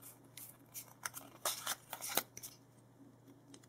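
Stiff playing cards flick and rustle as they are shuffled through by hand.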